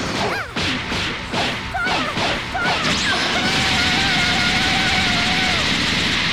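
Punches and kicks thud and crack in quick bursts.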